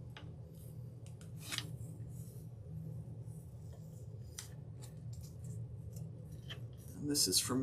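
Fingers rub and tap on stiff paper.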